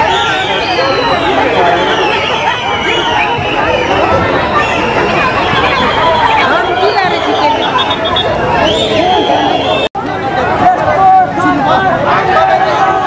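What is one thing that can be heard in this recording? A large crowd of men and women talks and shouts all at once nearby, outdoors.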